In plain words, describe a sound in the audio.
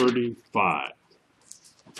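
An elderly man speaks briefly, close by.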